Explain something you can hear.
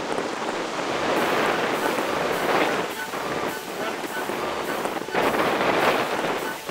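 A man talks loudly over the wind.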